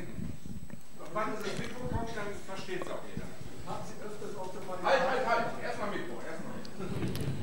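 A second man talks quietly and more faintly, further from the microphone.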